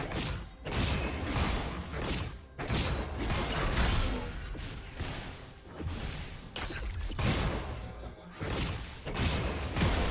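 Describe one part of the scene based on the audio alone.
Spell effects and weapon hits clash and crackle in a busy game battle.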